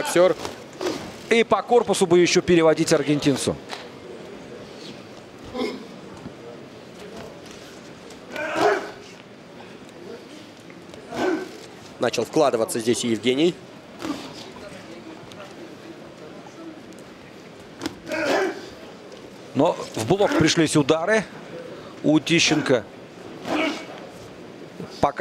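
A crowd murmurs in a large hall.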